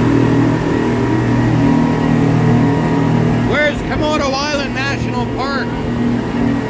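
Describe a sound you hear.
Water rushes and splashes behind a speeding boat.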